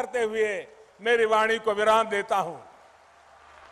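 An older man speaks loudly and with emphasis through a loudspeaker.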